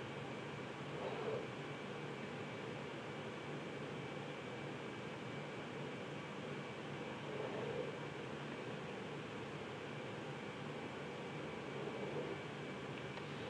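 A plastic set square slides across paper with soft scrapes.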